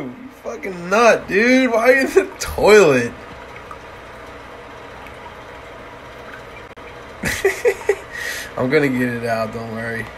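Water swirls and gurgles in a toilet bowl.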